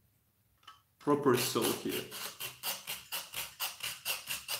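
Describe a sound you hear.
A knife blade scrapes rapidly back and forth on a sharpening stone.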